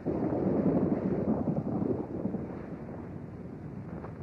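Lava spurts and roars in a deep, rumbling rush.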